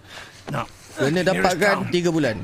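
A young man speaks calmly into a nearby microphone.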